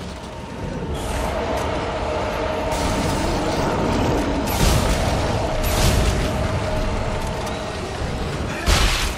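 A monster screeches and snarls as it attacks.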